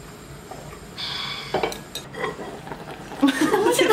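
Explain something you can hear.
A lid clatters as it is lifted off a pot.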